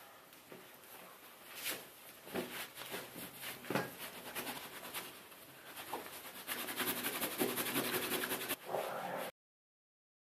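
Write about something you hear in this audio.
A towel rubs against skin.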